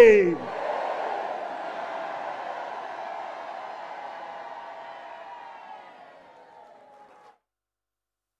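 A large crowd sings and cries out together in an echoing hall, slowly fading away.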